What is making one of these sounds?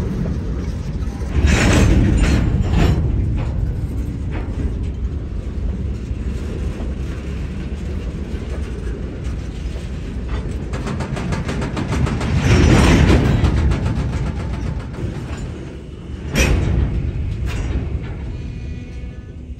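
Freight cars rumble and rattle past on the rails.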